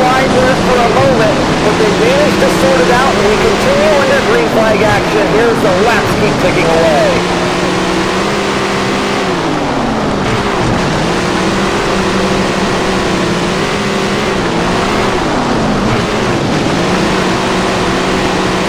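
A race car engine roars and revs up and down.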